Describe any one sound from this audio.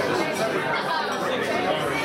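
A girl laughs close by.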